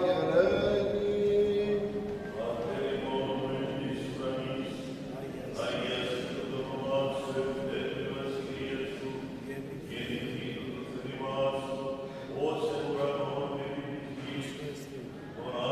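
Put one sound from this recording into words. An elderly man chants a prayer slowly through a microphone in an echoing hall.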